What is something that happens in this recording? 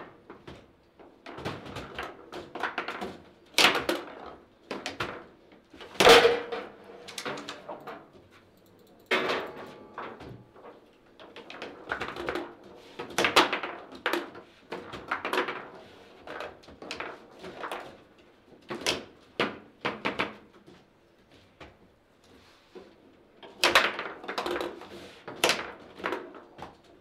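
Foosball rods clack and a ball knocks sharply against a table.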